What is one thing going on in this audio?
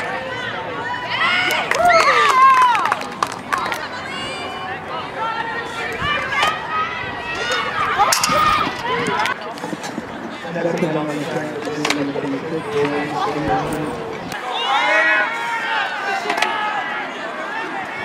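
A crowd cheers and shouts as an athlete clears the bar.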